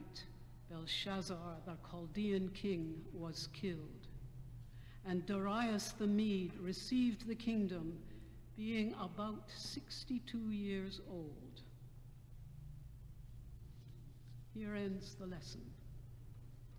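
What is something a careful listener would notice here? An elderly woman reads aloud calmly through a microphone in a large echoing hall.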